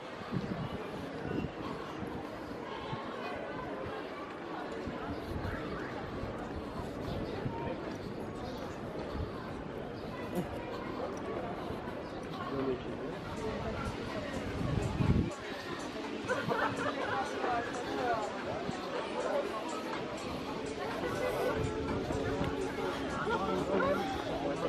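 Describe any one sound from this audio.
A crowd of pedestrians chatters outdoors in the open.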